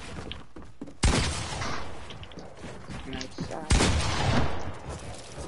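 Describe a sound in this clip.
A gun fires a loud blast.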